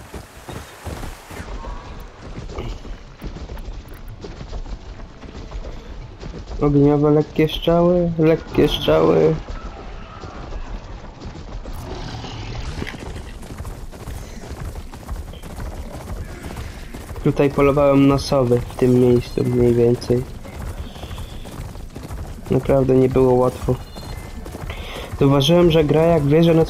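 Heavy mechanical footsteps thud and clank at a steady gallop.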